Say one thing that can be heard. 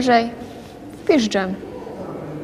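A young woman speaks briefly and close by.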